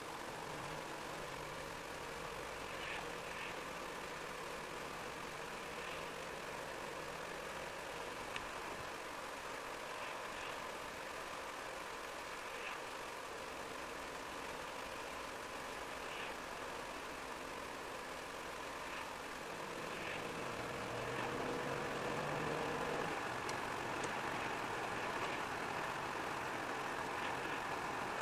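A car engine hums steadily, heard from inside.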